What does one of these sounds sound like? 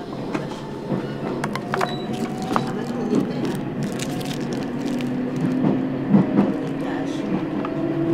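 A plastic wrapper crinkles in someone's hands.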